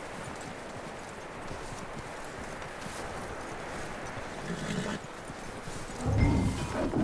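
Wind blows steadily through snow.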